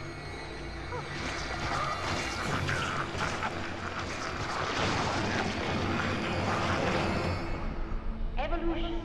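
Wet tentacles writhe and squelch.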